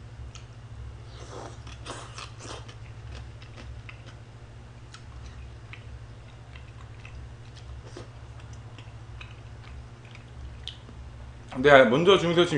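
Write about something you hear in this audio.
A young man chews and slurps food close to a microphone.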